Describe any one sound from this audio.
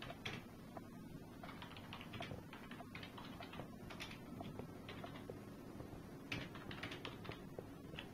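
Fingers tap quickly and unevenly on a computer keyboard.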